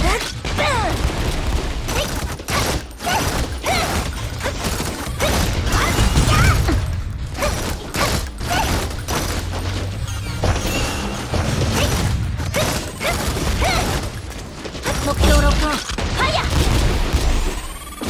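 Game weapons fire and blasts hit with rapid impacts.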